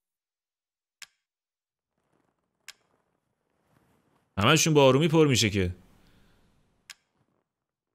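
Short soft clicks tick now and then as a menu selection moves.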